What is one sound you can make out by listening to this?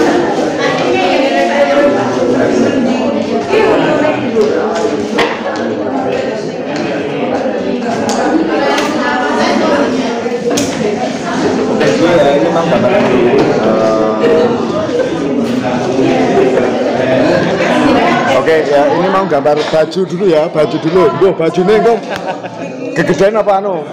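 Several adults talk over one another nearby in a room.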